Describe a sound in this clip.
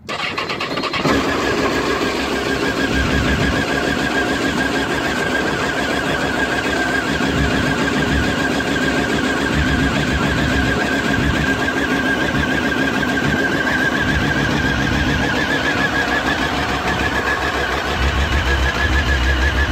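An inline-four sportbike engine idles.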